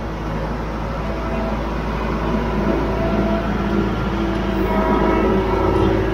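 A tractor engine runs with a steady diesel rumble, growing louder as it approaches.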